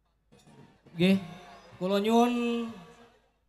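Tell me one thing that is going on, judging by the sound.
A man sings loudly through loudspeakers.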